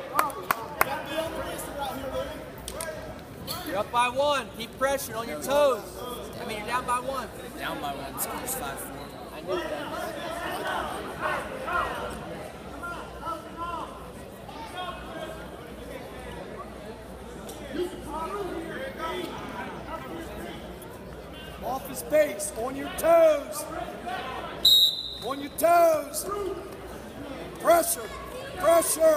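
A crowd of spectators murmurs and calls out in a large echoing gym.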